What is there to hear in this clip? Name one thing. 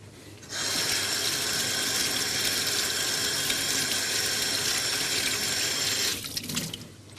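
Water runs hard from a tap into a sink.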